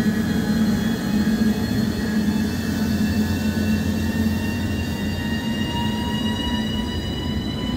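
Train wheels rumble over the rails.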